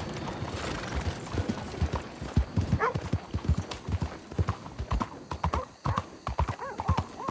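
Horse hooves clop and pound on the ground at a gallop.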